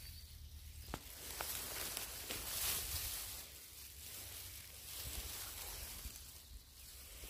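A hand rubs and rustles against mossy wood close by.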